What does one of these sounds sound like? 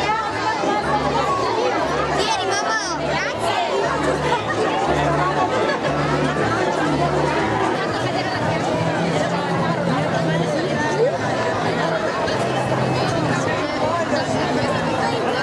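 A large crowd of men, women and children chatters outdoors.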